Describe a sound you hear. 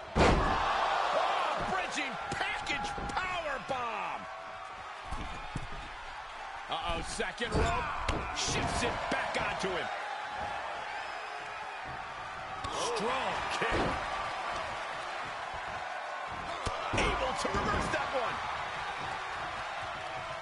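A large crowd cheers and roars steadily in a big arena.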